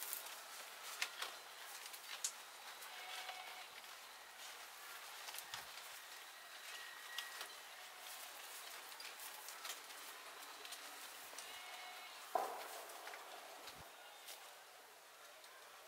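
Carrot leaves rustle and crackle as hands handle a bunch of carrots.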